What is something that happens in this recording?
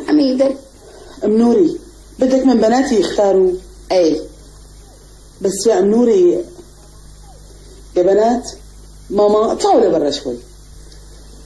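A second middle-aged woman answers calmly.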